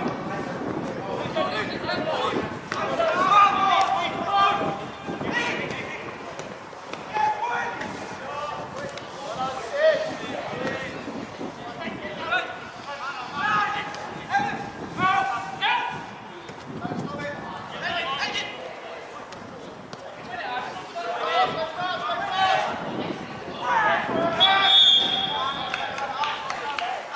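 Players shout and call out across an open pitch outdoors.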